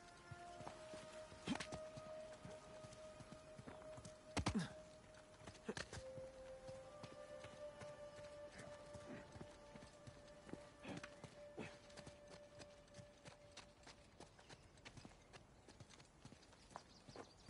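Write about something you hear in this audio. Footsteps run and scuff over stone and leaves.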